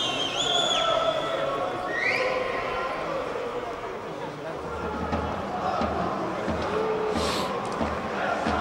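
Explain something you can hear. Players shout to each other across the pitch.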